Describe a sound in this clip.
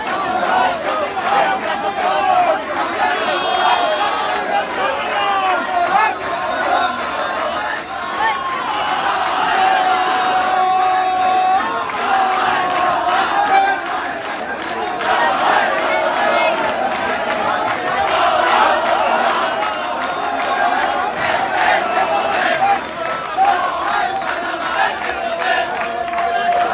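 Men close by shout excitedly.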